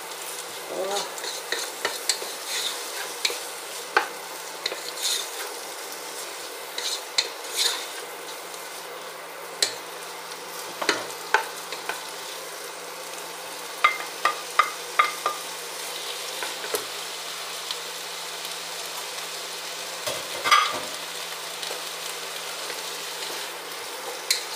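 A wooden spoon stirs and scrapes vegetables in a pot.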